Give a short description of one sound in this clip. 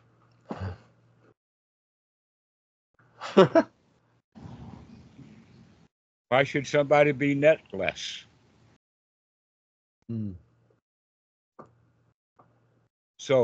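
A young man laughs and talks over an online call.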